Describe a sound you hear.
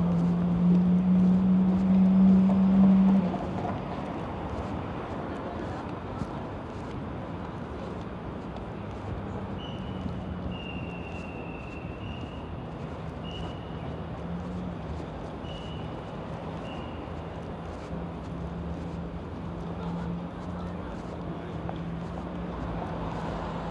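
Outdoor street noise hums in the background.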